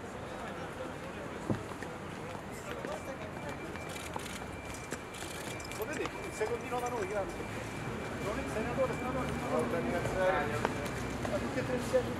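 Footsteps scuff on stone steps outdoors.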